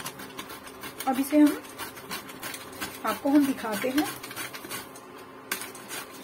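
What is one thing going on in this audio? A vegetable is rubbed quickly over a grater, scraping and rasping.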